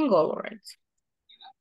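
A woman speaks briefly through an online call.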